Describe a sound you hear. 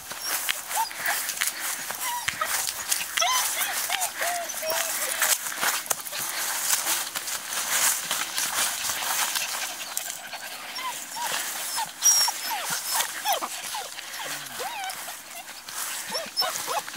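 Puppies whine and yelp in high squeaky voices.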